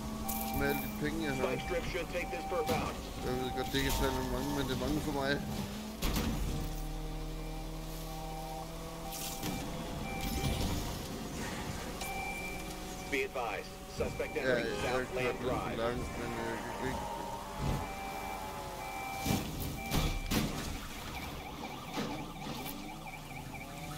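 Police sirens wail behind a car.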